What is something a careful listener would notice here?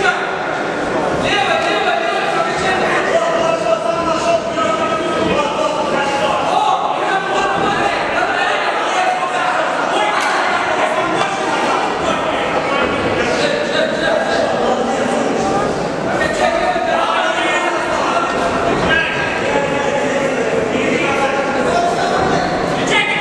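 A crowd cheers and shouts in a large hall.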